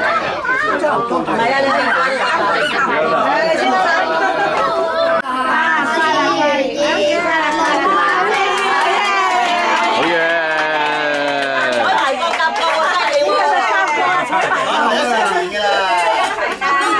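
Several adults talk and chatter at once, close by.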